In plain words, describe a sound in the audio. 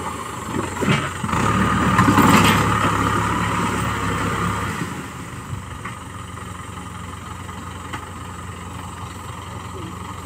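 A disc harrow scrapes and churns through soil.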